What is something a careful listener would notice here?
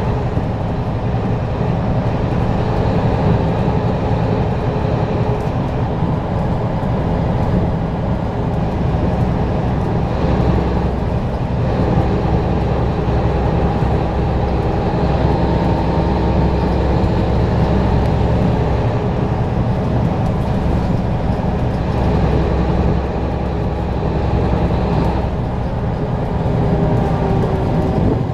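Tyres roar steadily on smooth asphalt.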